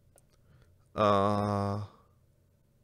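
A man makes a short drawn-out vocal sound close to a microphone.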